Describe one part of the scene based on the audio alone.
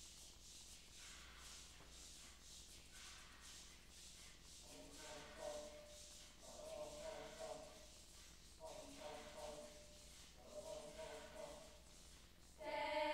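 A choir of young voices sings together in a large echoing hall.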